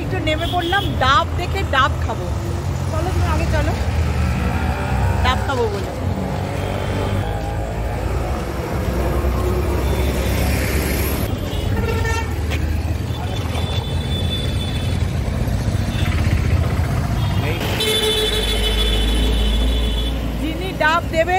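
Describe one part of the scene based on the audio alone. Street traffic rumbles outdoors.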